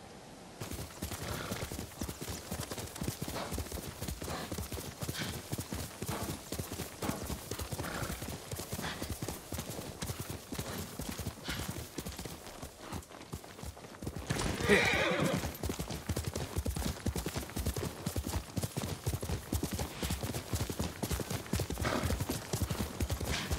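Horse hooves gallop quickly over grass.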